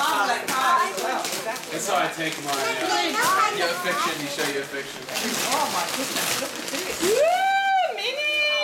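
Wrapping paper crinkles and tears.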